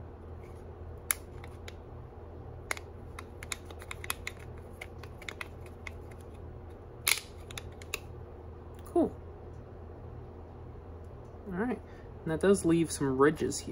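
Plastic pieces click and clack as they are fitted together by hand.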